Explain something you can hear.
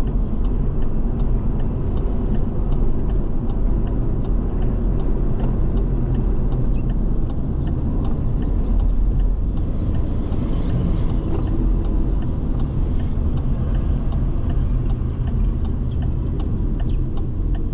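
Tyres roll over the road surface with a low rumble.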